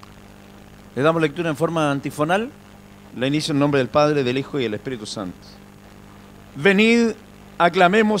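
A middle-aged man speaks into a microphone, heard through loudspeakers in an echoing hall.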